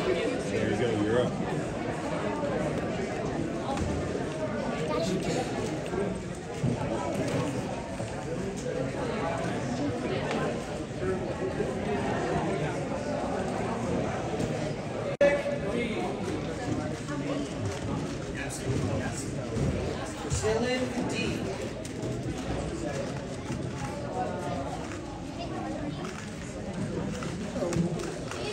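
Children and adults chatter around the room.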